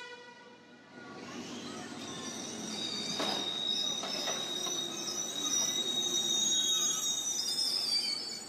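A train rumbles slowly along the tracks.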